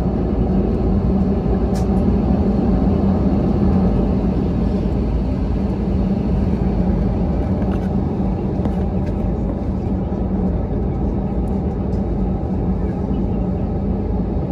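Tyres rumble on the runway as the plane rolls along.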